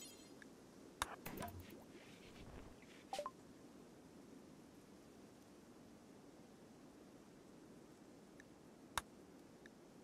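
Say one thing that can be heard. Short interface clicks and blips sound now and then.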